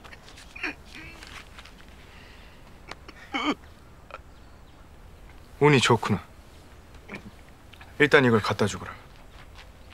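A middle-aged man sobs and cries.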